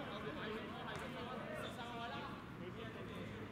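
Young men shout to each other across an outdoor court.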